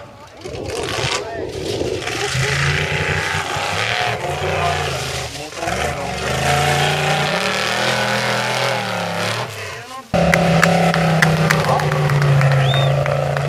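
An off-road buggy engine revs and roars loudly.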